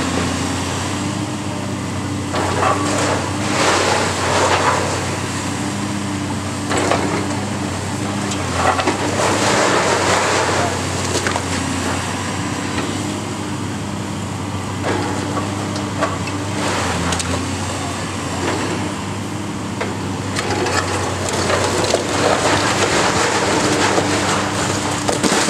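A heavy diesel engine rumbles steadily.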